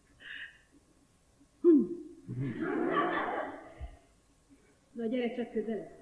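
A young woman speaks clearly.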